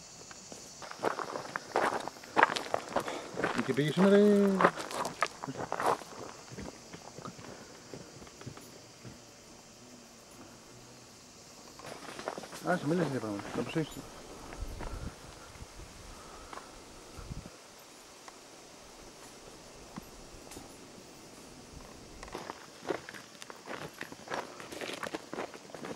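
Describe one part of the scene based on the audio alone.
Footsteps crunch on loose gravel and stones.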